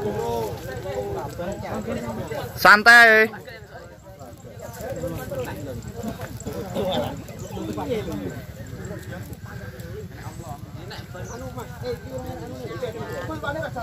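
A crowd of men and women talk and shout excitedly close by.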